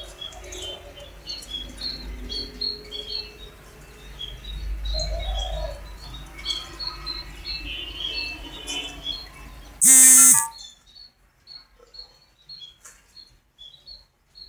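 A dove coos softly nearby.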